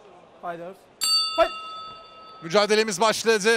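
A boxing bell rings once with a bright, ringing tone.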